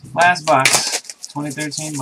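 Plastic wrapping crinkles as a box is handled.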